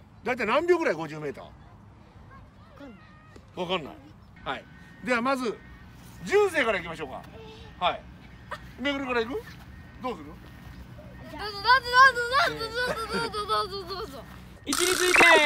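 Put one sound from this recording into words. Young boys talk and answer.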